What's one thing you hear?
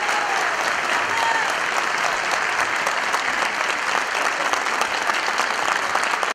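A large audience applauds loudly in an echoing hall.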